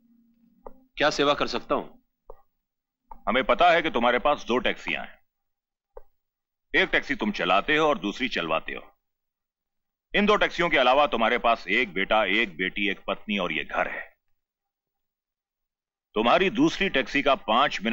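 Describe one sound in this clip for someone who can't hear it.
A middle-aged man speaks sternly and forcefully, close by.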